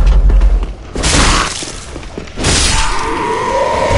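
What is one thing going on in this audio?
A sword swings and strikes.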